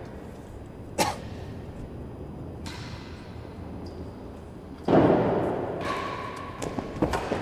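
A racket strikes a ball with a sharp crack that echoes around a large hall.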